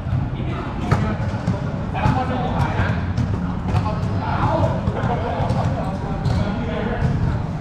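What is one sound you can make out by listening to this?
A basketball bounces on a hard court with sharp thuds.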